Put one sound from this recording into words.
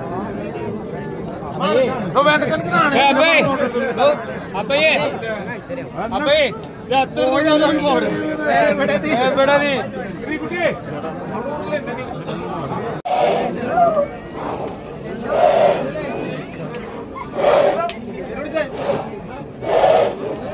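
A crowd of men chatters and calls out close by, outdoors.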